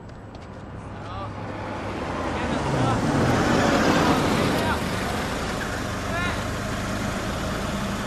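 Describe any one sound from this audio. A car engine approaches and rumbles close by.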